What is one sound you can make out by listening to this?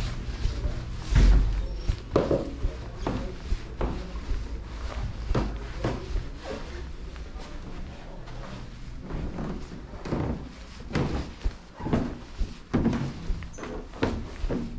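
Footsteps thud up carpeted stairs at a steady pace.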